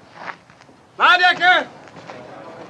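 A younger man speaks sharply close by.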